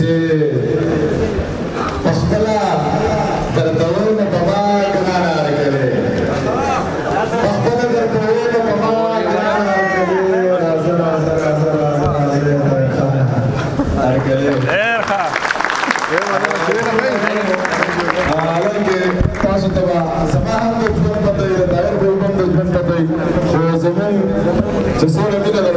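A crowd of men talks and murmurs in a large echoing hall.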